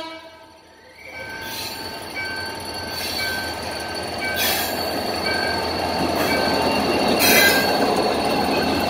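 A diesel locomotive engine rumbles, growing louder as it approaches.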